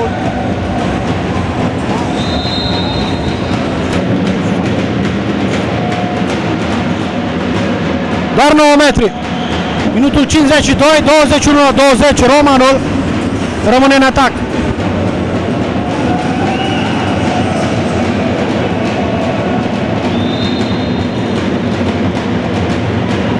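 A crowd of spectators murmurs and cheers in a large echoing hall.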